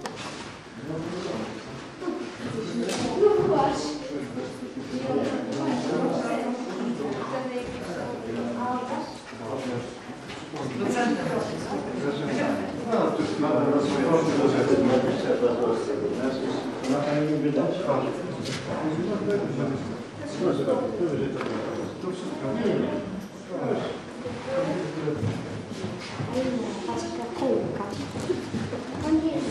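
A crowd of people murmurs and chatters in an echoing room.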